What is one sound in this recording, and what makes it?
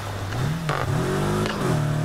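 A car exhaust pops and crackles.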